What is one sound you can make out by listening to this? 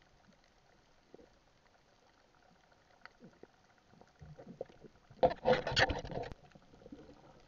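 A hooked fish thrashes and splashes underwater.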